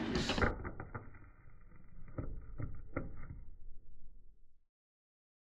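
Dice clatter on a table.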